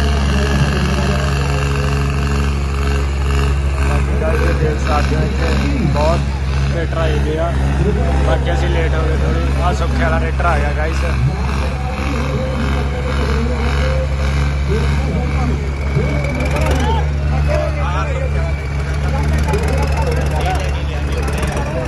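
A crowd of men chatters and shouts outdoors.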